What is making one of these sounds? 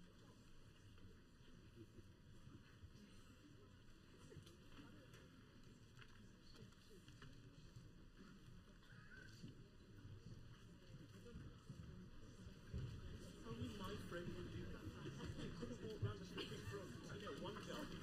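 An audience murmurs and chatters quietly in a large hall.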